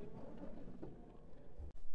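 A book slides against a shelf.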